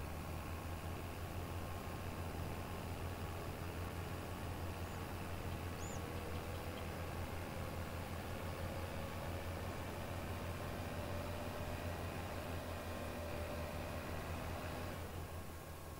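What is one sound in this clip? A combine harvester engine drones steadily.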